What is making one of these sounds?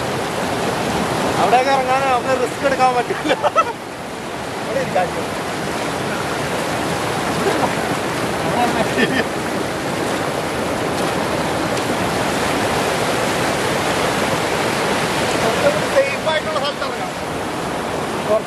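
Rapids rush and roar loudly outdoors.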